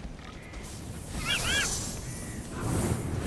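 A sparkling magical effect chimes and crackles.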